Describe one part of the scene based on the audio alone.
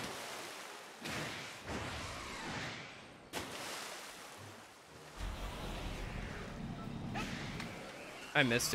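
Water splashes steadily as something speeds across it.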